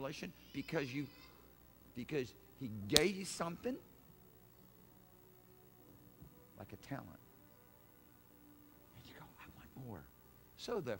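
A middle-aged man speaks with animation, pausing between phrases.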